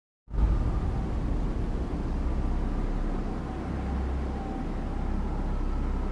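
A heavy vehicle's engine rumbles steadily at idle.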